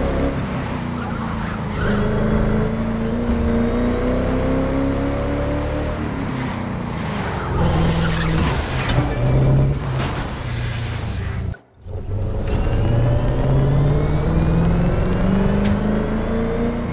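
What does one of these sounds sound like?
A sports car engine roars loudly, rising and falling in pitch as it speeds up and slows down.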